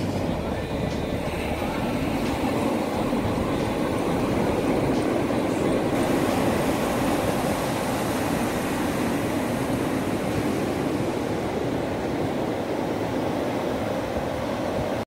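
Waves break and wash up onto a sandy shore with a steady roar.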